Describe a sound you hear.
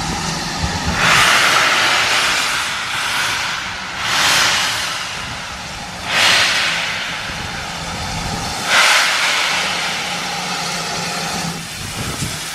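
A steam locomotive chuffs in loud, rhythmic bursts of steam close by.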